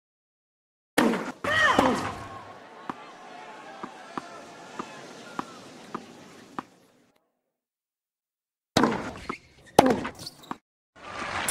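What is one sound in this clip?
A racket strikes a tennis ball with a sharp pop.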